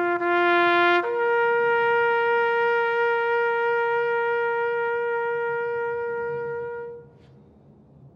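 A bugle plays two long, slow notes outdoors, the last note held and fading into a soft echo.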